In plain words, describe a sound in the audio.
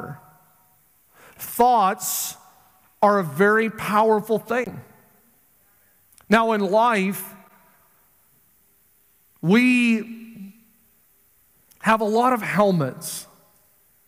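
A middle-aged man speaks with feeling into a microphone, in short phrases with long pauses.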